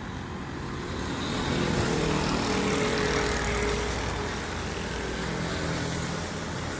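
A motorbike passes along the road nearby.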